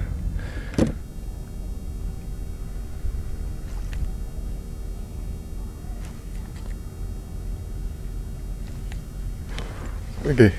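A fishing reel whirs steadily.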